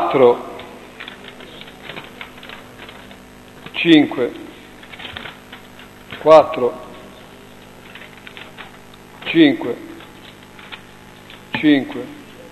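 A man calls out short words loudly at intervals in an echoing room.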